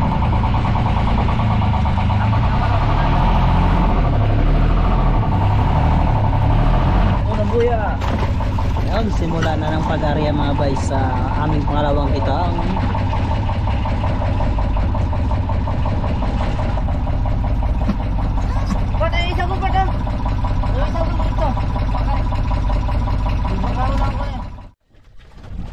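A boat engine hums steadily and loudly.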